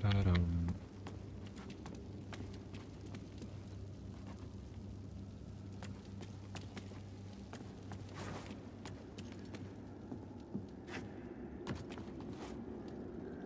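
Footsteps thud on creaking wooden planks.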